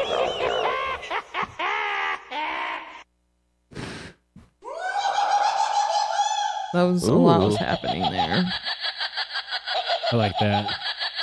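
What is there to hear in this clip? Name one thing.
Men talk with animation over microphones in an online call.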